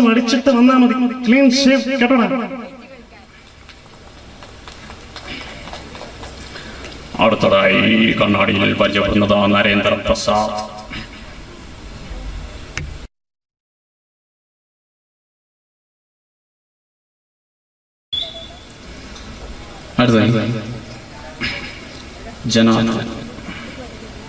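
A young man speaks with feeling into a microphone over loudspeakers.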